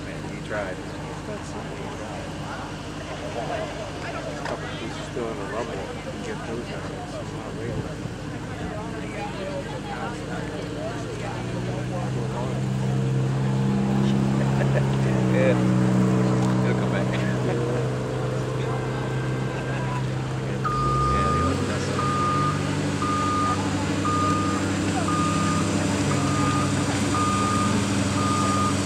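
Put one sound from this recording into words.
A large diesel excavator engine rumbles steadily nearby and revs louder at times.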